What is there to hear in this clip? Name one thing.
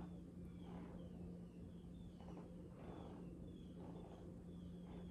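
A ceiling fan hums steadily close by.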